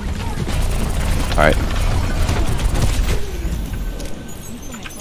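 Rapid gunfire rattles with loud blasts.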